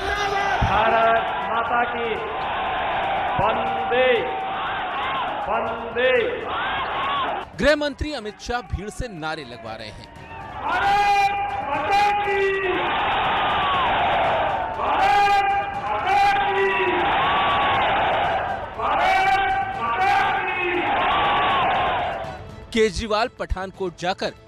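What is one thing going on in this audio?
A man shouts forcefully into a microphone over loudspeakers, echoing outdoors.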